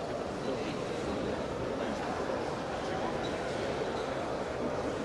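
A crowd murmurs and chatters steadily in a large echoing hall.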